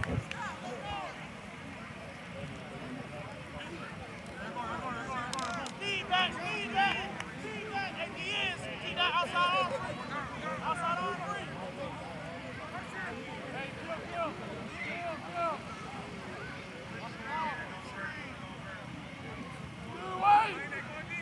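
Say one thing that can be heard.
A crowd of spectators shouts and cheers from a distance outdoors.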